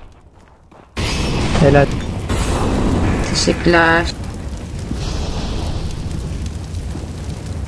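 A fire roars and crackles loudly.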